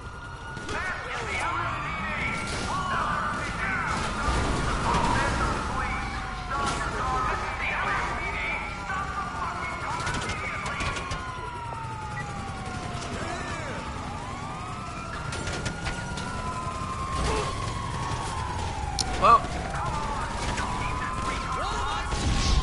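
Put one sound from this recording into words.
Police sirens wail, rising and falling throughout.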